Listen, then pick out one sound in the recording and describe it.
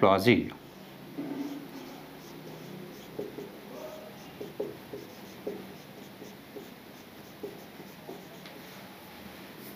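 A marker squeaks faintly on a whiteboard.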